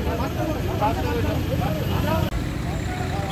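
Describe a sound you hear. Several men talk at once close by.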